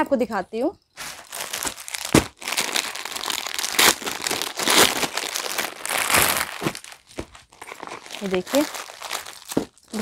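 A plastic wrapper crinkles and rustles as it is handled.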